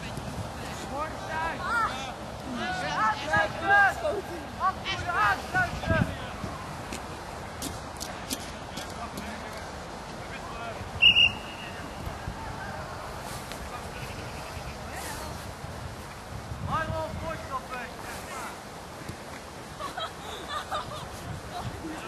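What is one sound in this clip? Young men shout to each other outdoors, heard from a distance.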